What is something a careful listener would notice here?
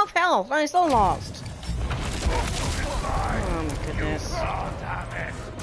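A heavy stone slab shatters with a loud crash and debris rumbles.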